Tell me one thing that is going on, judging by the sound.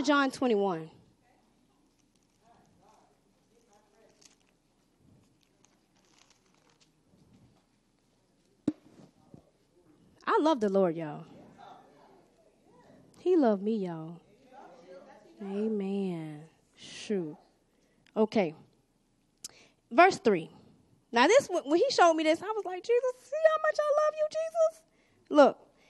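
A woman speaks and sings with feeling into a microphone, heard through loudspeakers in a large room.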